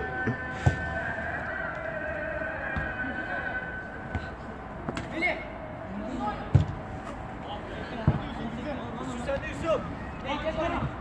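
Men shout to each other across an outdoor pitch.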